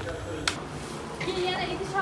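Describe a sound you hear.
Broth splashes as it is poured from a ladle.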